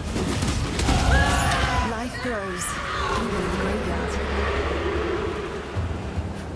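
A bright magical chime swells and rings out, then fades.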